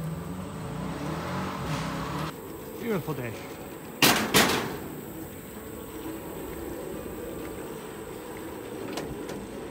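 Bicycle tyres rumble over wooden boards.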